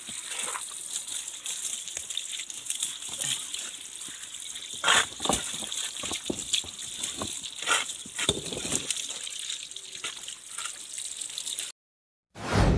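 Water splashes and trickles as hands rummage in a shallow stream.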